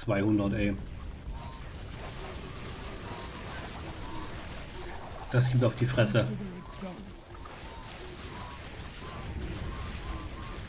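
A magic beam zaps and crackles.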